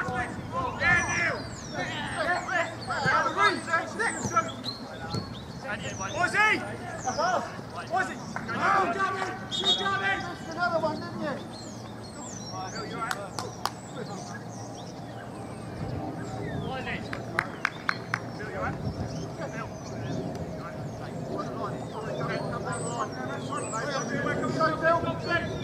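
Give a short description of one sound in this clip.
Football players shout to each other across an open field outdoors.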